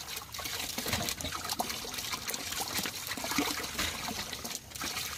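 Water pours from a hose into a tub of water.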